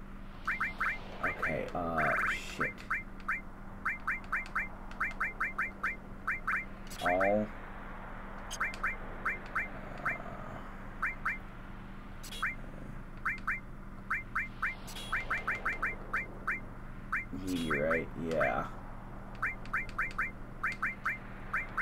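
Short menu cursor beeps tick rapidly again and again.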